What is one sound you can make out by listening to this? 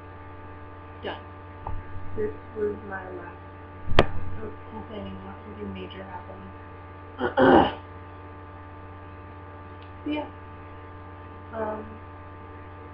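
A young woman speaks quietly and close to a microphone, in short bursts.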